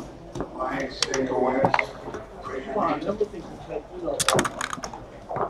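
Plastic game pieces click against a board as they are moved.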